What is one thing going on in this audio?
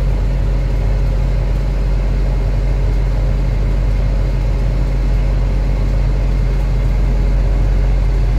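A heavy diesel engine rumbles and idles steadily nearby.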